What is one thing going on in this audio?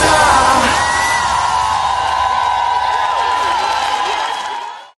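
A large crowd cheers and whistles loudly in an echoing hall.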